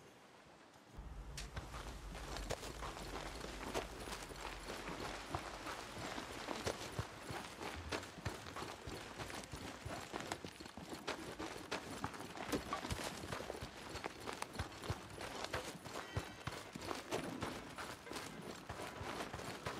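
Footsteps run quickly over dirt and grass.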